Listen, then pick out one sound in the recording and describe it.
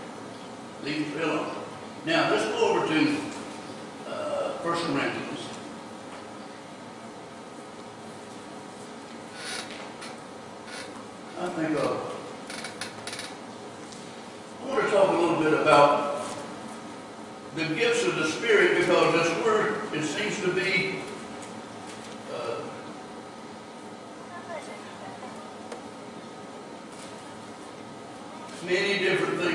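A man speaks calmly into a microphone, with pauses, in an echoing hall.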